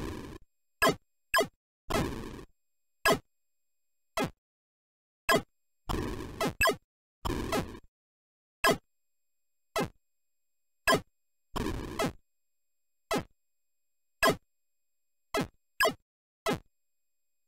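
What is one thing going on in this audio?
Electronic game blips fire in quick beeps again and again.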